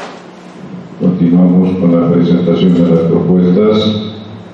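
A man speaks loudly nearby in an echoing room.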